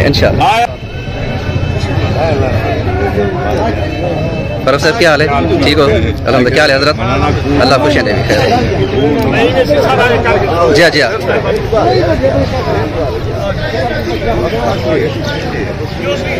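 Several men talk together outdoors, close by.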